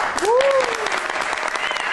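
A woman sings on a stage through a microphone.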